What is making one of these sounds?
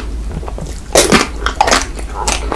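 A young man bites into firm chocolate with a sharp crack close to a microphone.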